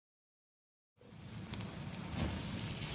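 A cutting torch hisses and crackles with sparks.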